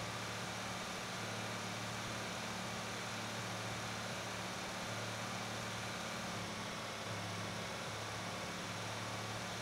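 Tyres roll over a road with a steady hiss.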